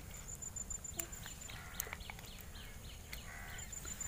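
Water splashes softly as a hand dips into a pond.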